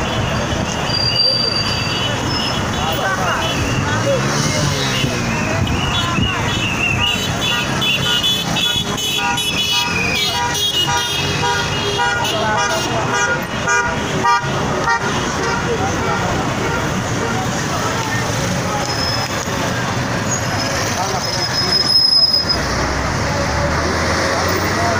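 A crowd of people talks and calls out loudly outdoors.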